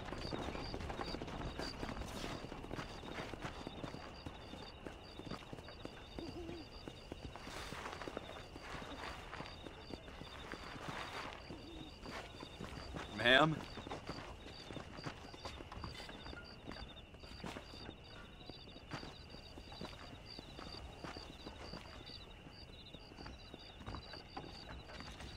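Footsteps crunch on dirt and thud on wooden boards.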